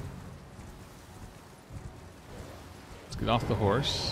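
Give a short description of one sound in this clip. A horse's hooves thud on soft ground as it gallops.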